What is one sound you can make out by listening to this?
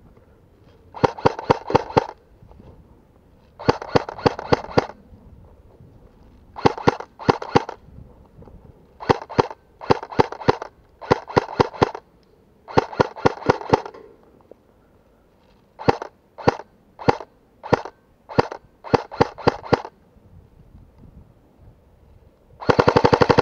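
An airsoft gun fires in quick bursts of sharp pops close by.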